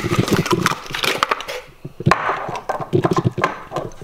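A glass bottle slides out of a cardboard box.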